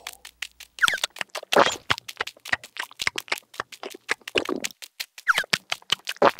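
A cartoon character squeals in a high, excited voice.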